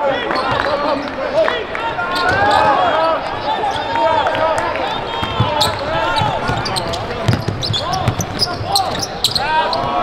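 Sneakers squeak sharply on a hardwood court in a large echoing arena.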